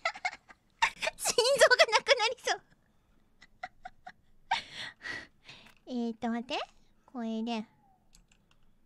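A young woman talks excitedly into a close microphone.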